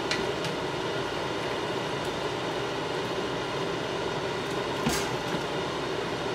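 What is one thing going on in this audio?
A wooden spoon scrapes and knocks against a pot.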